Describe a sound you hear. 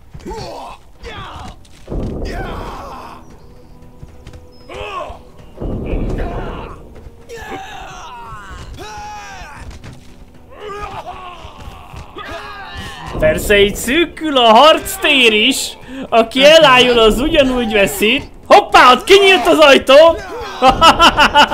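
A man talks with animation into a close microphone, growing louder and more excited toward the end.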